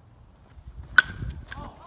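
A ball smacks loudly into a catcher's mitt.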